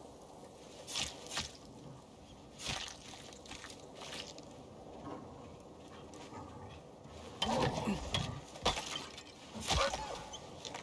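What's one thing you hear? A knife stabs into flesh with wet thuds.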